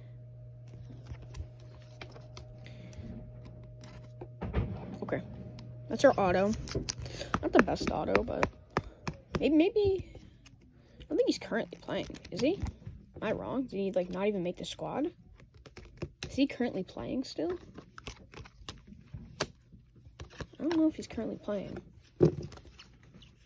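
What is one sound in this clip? Plastic card sleeves and cases click and rustle between fingers.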